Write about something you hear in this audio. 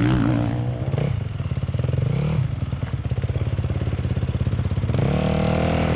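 Several dirt bike engines buzz and rev as they climb toward the listener.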